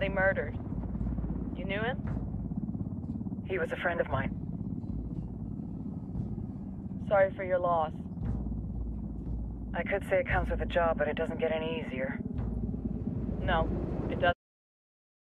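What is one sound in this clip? A helicopter engine hums steadily inside the cabin.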